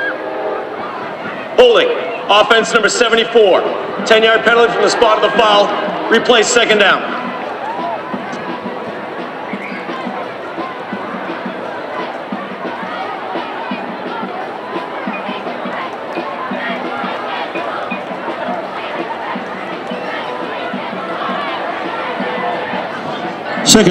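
A crowd of spectators murmurs and chatters outdoors.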